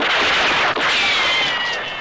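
An explosion bursts among rocks.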